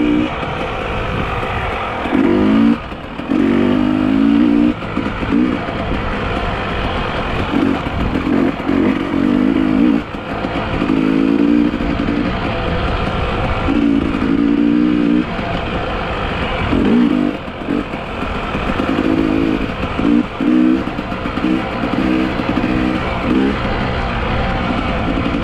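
A dirt bike engine revs up and down close by.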